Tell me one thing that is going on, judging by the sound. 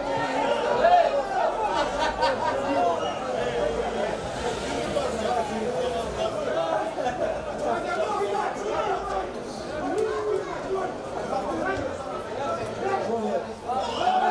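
Men's voices shout and call out across an open field.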